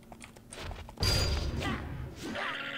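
A sword slashes with a loud whoosh.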